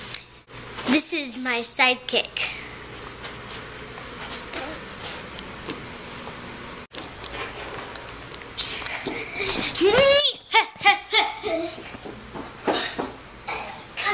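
A young girl speaks and squeals excitedly close by.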